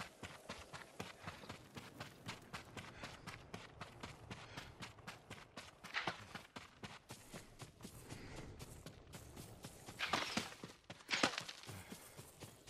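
Quick footsteps run over dirt and grass.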